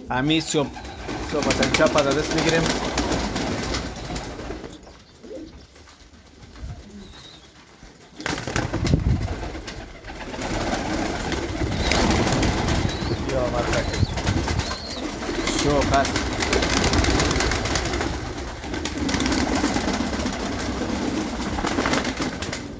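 Pigeons flap their wings in short bursts.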